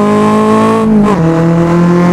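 A car exhaust pops with a sharp bang.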